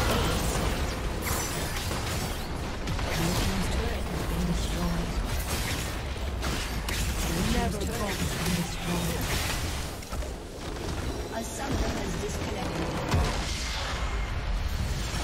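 Game spell effects and impacts crash and whoosh in a fierce battle.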